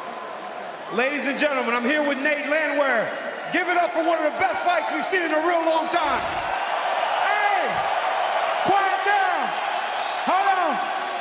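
A young man answers into a microphone, breathless and excited.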